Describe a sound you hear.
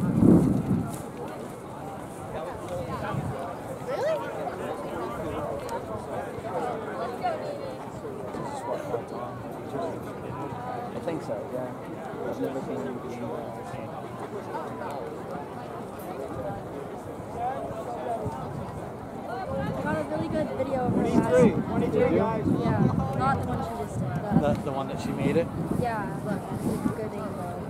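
A crowd of teenagers chatters and calls out at a distance outdoors.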